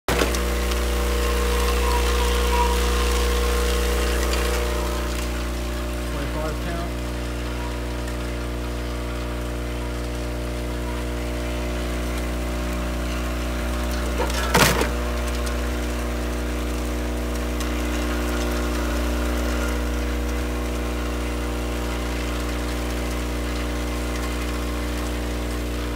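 Wrapped candies rattle and clatter as the machine moves them along.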